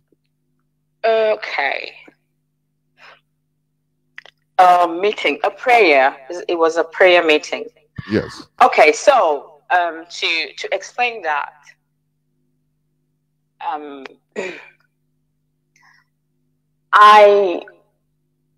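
A woman speaks with animation over a broadcast, in short bursts with pauses.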